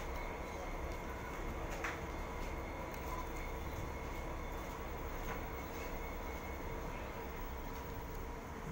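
Train wheels squeal and click on the rails.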